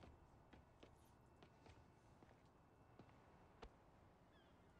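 Footsteps tap on hard ground at a walking pace.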